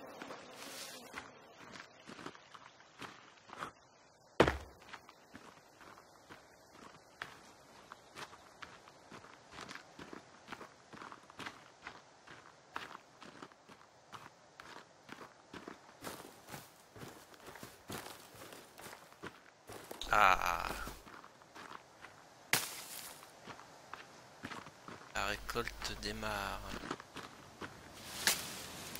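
Footsteps swish and crunch through grass at a steady walking pace.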